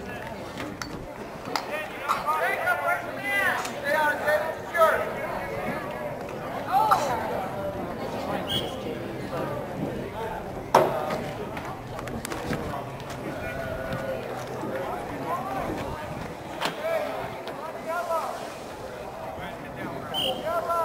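Players and spectators shout and call out across an open field outdoors.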